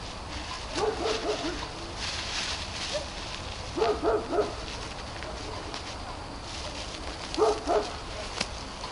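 Dry brush rustles and crackles underfoot.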